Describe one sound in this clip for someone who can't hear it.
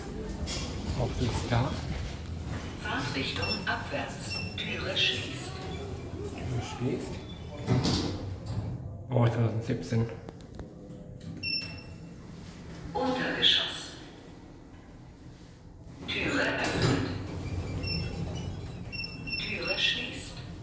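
Elevator doors slide open and shut.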